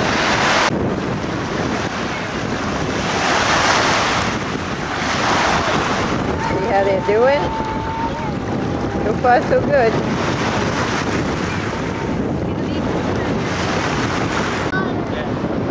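Wind blows and waves wash in the open outdoors.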